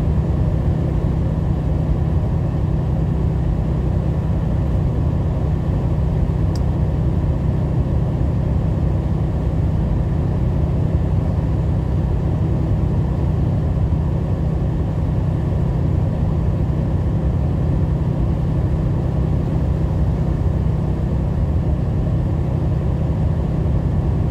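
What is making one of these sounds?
Tyres hum on a wet road.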